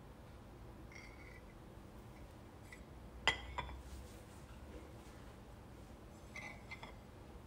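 A metal spoon clinks and scrapes against a glass jar.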